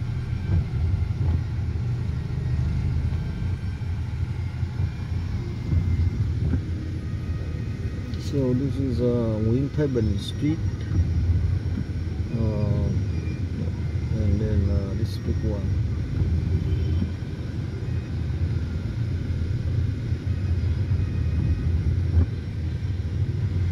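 A car engine hums low and steady from inside the vehicle.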